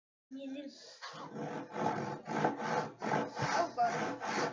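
A hand saw cuts through wood in quick, steady strokes.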